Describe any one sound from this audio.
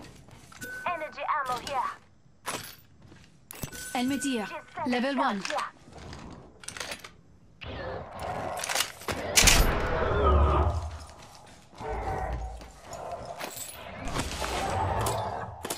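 Items are picked up with short clicking sounds.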